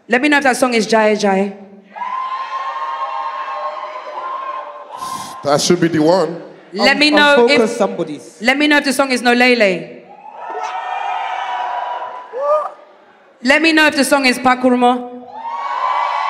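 A woman sings through a microphone.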